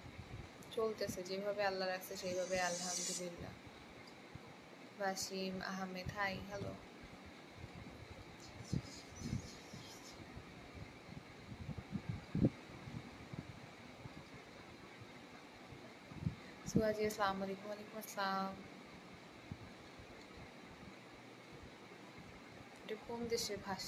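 A young woman speaks calmly and close by, in short phrases with pauses.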